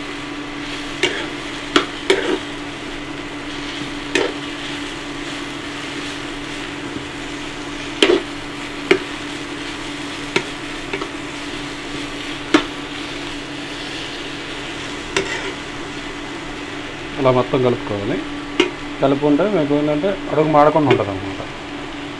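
A metal spatula scrapes and clatters against a frying pan.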